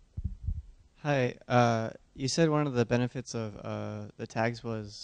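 A young man speaks calmly into a microphone in a large echoing hall.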